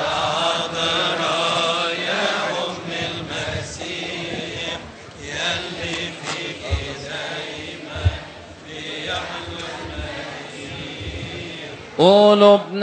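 A man chants a liturgy through a loudspeaker in a large echoing hall.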